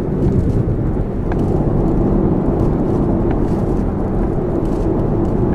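Road noise grows louder and echoes inside a tunnel.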